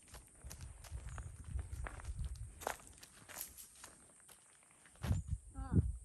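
Footsteps crunch on dry grass and dirt.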